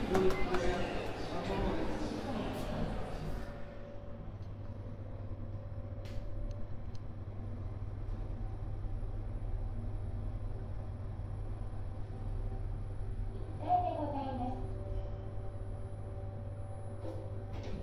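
An elevator hums steadily as it descends.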